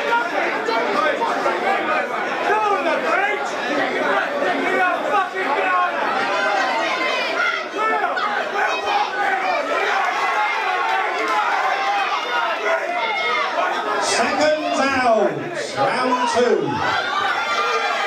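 A crowd of men and women talks and cheers loudly all around.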